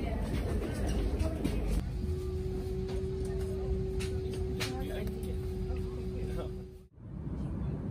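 Passengers murmur and chat in a crowded aircraft cabin.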